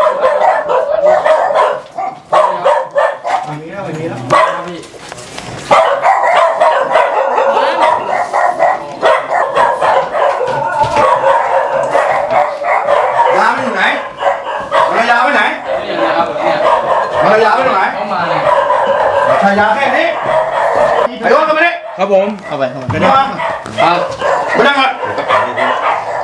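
Several men talk in urgent, raised voices close by.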